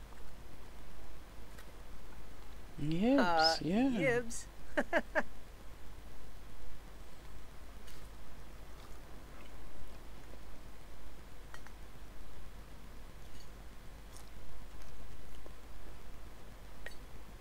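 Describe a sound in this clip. A young man chews food.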